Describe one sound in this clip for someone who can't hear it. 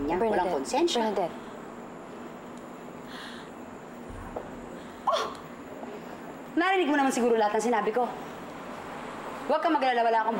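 A young woman speaks sharply and with feeling, close by.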